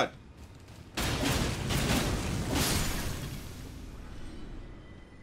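A magical blast whooshes and rumbles.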